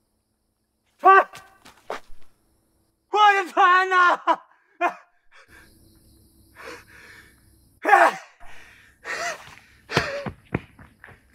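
A man shouts in distress nearby.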